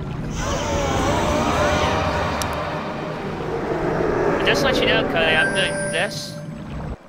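A magical chime and whoosh sound as a building is summoned.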